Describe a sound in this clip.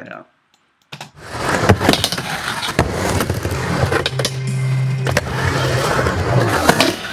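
Skateboard wheels roll and rumble on a ramp close by.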